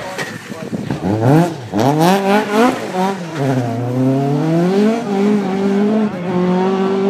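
A rally car engine revs hard, rising and falling in pitch as the car approaches and passes close by.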